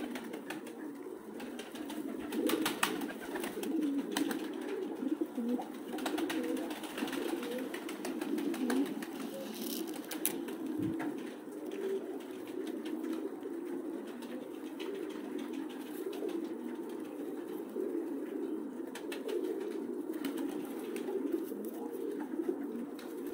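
Pigeons coo steadily close by.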